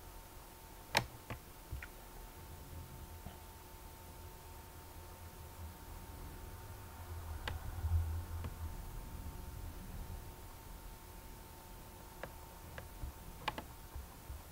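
A computer chess game plays short clicking sounds as pieces move.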